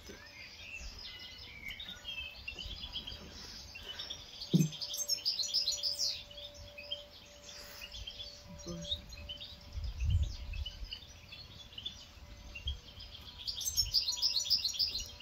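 A small bird sings rapid twittering songs.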